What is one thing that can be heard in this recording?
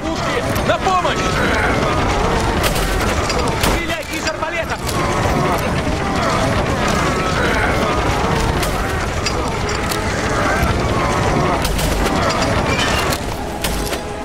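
Swords clash and ring in a noisy battle.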